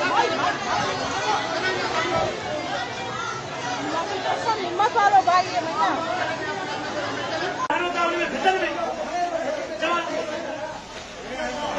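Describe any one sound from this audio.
A crowd of men shouts in the distance.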